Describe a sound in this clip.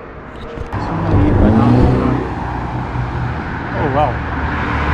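A young man speaks calmly close to the microphone, outdoors.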